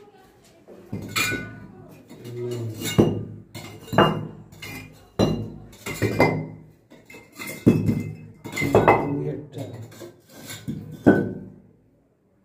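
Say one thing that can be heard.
A metal bar strikes bricks with sharp, repeated knocks.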